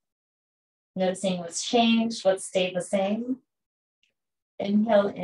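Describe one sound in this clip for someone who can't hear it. A young woman speaks calmly and softly into a close microphone, as on an online call.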